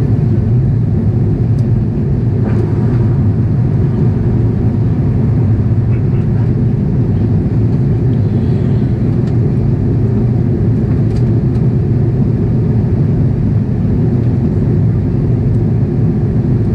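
A jet airliner's engines roar with a steady, deep rumble inside the cabin.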